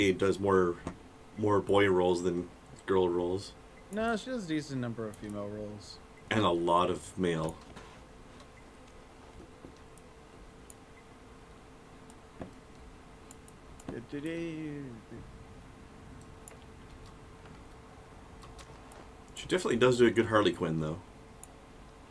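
A man talks calmly and close to a microphone, with pauses.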